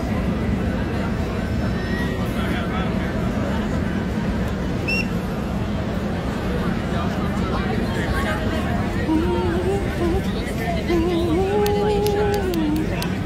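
A large crowd murmurs and chatters all around outdoors.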